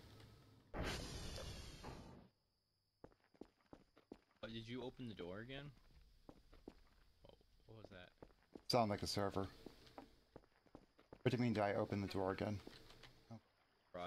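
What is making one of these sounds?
Footsteps walk on hard ground.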